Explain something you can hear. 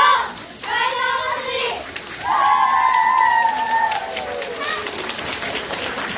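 Young girls chant loudly in unison.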